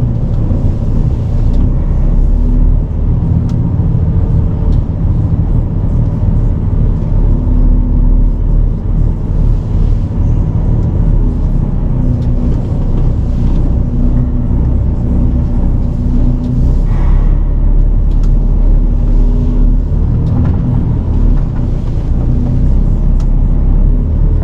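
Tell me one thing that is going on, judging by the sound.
A truck's cab rattles and creaks over rough ground.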